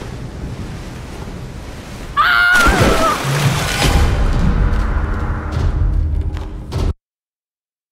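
Stormy sea waves crash and roar.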